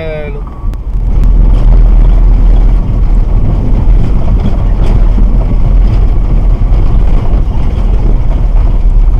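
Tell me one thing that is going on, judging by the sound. Tyres rumble loudly over cobblestones.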